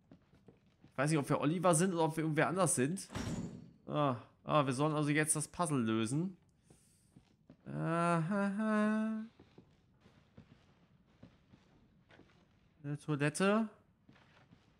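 A young man talks animatedly and close into a microphone.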